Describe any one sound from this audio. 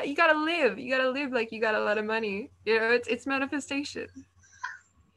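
A young person speaks with animation close to a webcam microphone.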